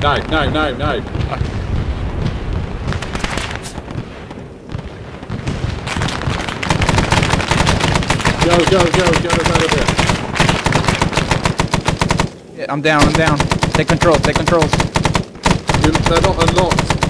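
A helicopter's rotor thumps rapidly and steadily overhead.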